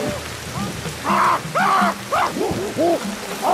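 Chimpanzees hoot and screech loudly nearby.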